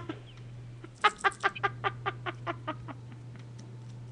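A young woman laughs in quick bursts.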